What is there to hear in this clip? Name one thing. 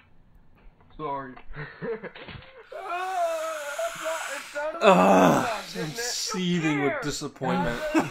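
A young man exclaims with animation close by.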